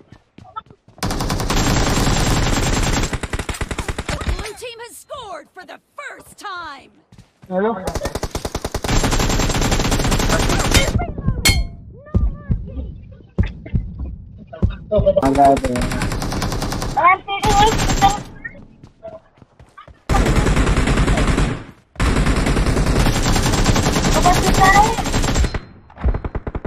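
Automatic gunfire rattles in rapid bursts.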